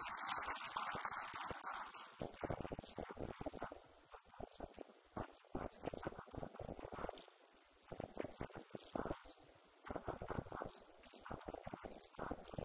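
A man speaks with animation into a handheld microphone over loudspeakers.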